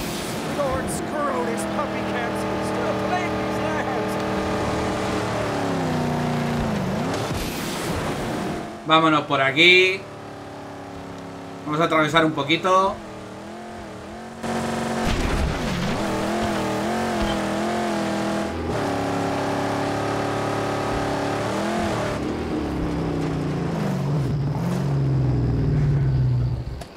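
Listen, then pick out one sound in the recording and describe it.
A car engine roars and revs as the car speeds over rough ground.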